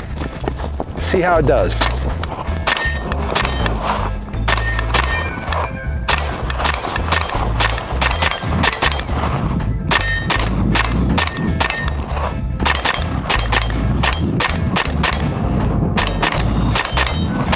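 A rifle fires rapid shots outdoors.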